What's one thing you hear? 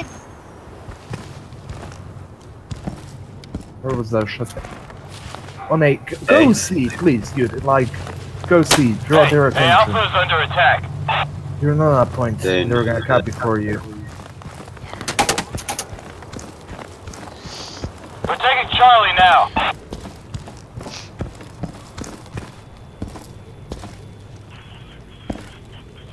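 Footsteps tread steadily on hard ground and snow.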